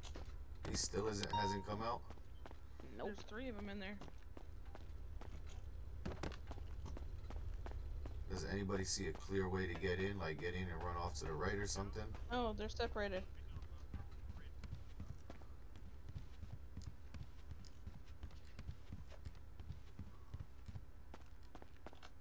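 Footsteps run quickly across a hard floor.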